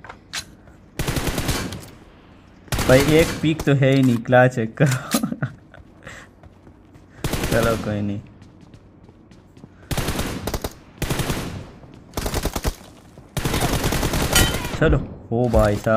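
Gunfire rattles in rapid bursts from a video game on a phone speaker.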